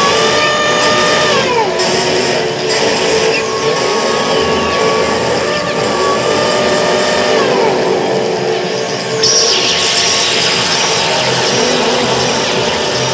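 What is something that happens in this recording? A guitar plays droning, noisy notes through effects.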